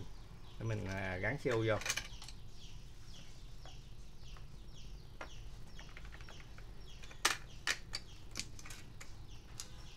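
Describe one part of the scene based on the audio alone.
A small metal latch clicks and taps.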